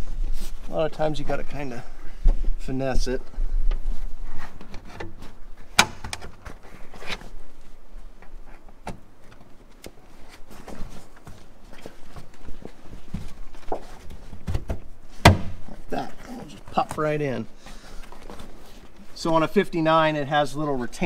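Fabric rustles and crinkles as it is pulled and tucked.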